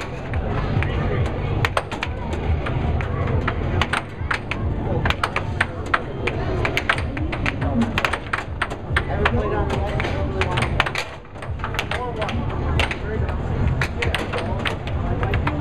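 An air hockey puck clacks sharply against mallets and the table's rails.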